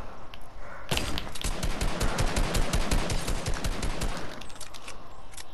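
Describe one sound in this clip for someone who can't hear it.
A rifle fires rapidly in bursts of gunshots.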